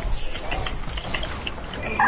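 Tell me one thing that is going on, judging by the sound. A pickaxe strikes a wooden wall with sharp knocks.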